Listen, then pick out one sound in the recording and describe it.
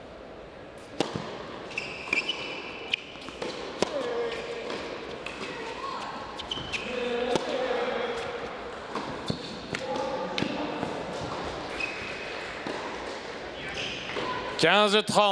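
A tennis ball is struck back and forth with rackets in sharp pops.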